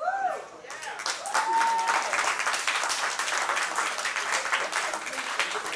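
A small audience claps and cheers.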